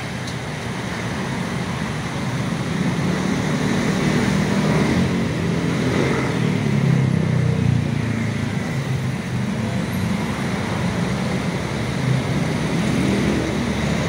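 Cars drive past close by with a whoosh.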